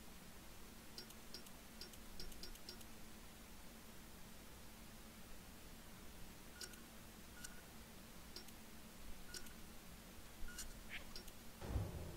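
Soft electronic menu blips tick now and then.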